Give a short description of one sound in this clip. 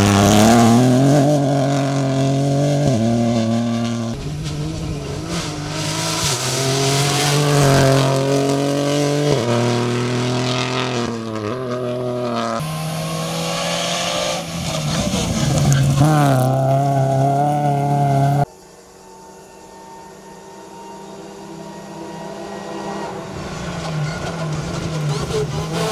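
A rally car engine roars and revs hard as the car speeds along.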